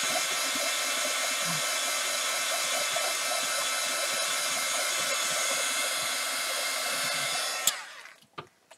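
A heat gun blows with a steady loud whir, then switches off with a click.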